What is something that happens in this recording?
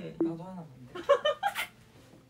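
A young woman squeals and shrieks playfully close by.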